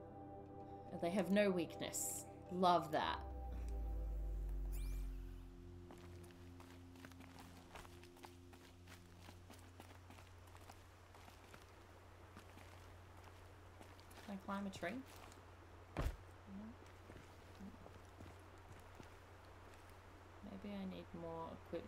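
A young woman speaks casually into a close microphone.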